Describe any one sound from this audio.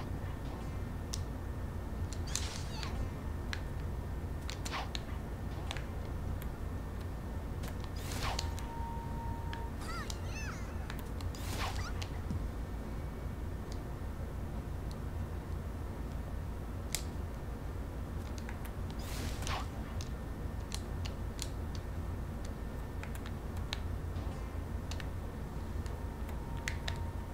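Short chimes and whooshes of a video game ring out again and again.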